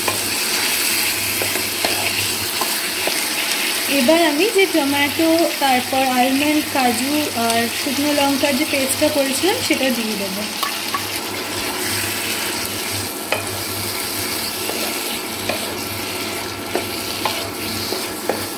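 A spatula scrapes and stirs in a pan.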